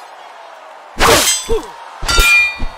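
Swords clash and clang with a metallic ring.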